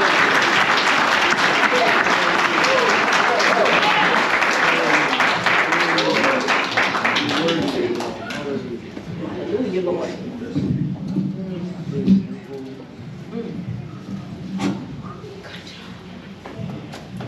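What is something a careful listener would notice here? A crowd sings loudly together in a large echoing room.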